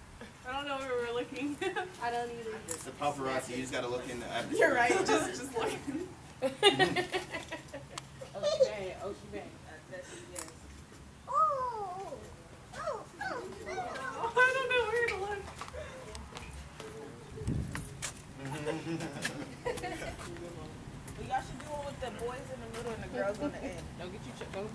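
Teenagers chat with one another.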